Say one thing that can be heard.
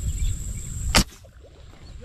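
An air gun fires once with a sharp crack.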